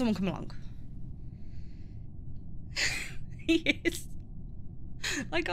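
A woman speaks casually into a microphone.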